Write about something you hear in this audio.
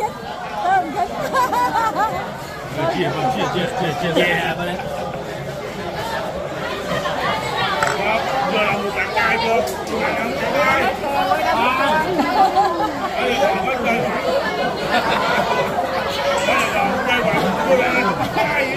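Several men talk and chatter in a busy, noisy crowd.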